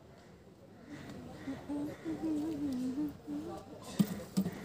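A woman talks nearby outdoors.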